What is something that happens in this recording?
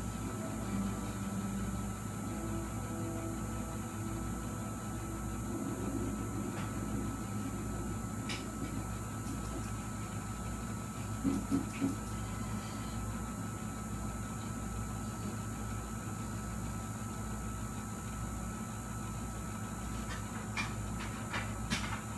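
A cassette deck hums and whirs steadily as its tape turns.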